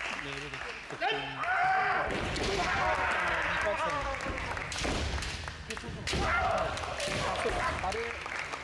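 Young men shout loud, drawn-out battle cries in a large echoing hall.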